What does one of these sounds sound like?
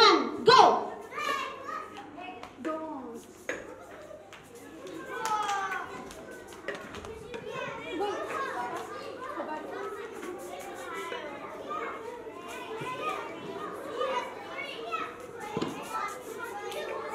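Footsteps of a child run across a hard floor.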